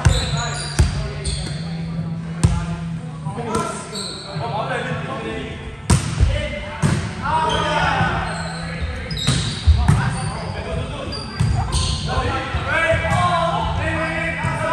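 Young men call out and shout to each other across the court.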